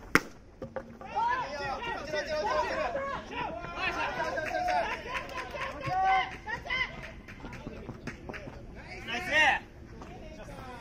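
Players shout and cheer loudly outdoors.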